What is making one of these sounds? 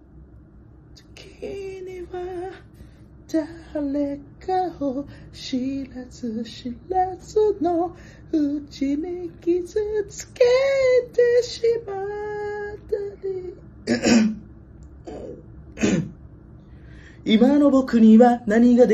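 A young man sings up close, his voice straining on high notes.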